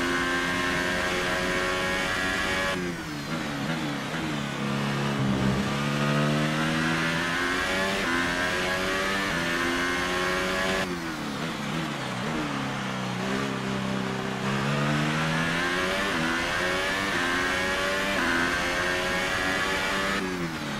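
A racing car engine screams at high revs, dropping in pitch under braking and rising again as it accelerates through the gears.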